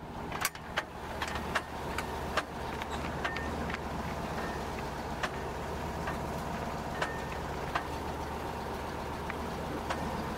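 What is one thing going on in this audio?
Wooden boards of a truck bed knock and rattle over bumps.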